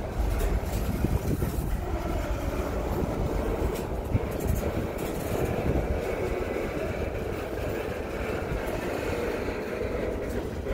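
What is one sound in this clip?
Steel wheels squeal and screech on the rails.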